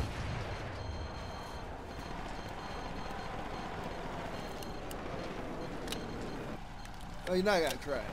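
A jet plane flies overhead.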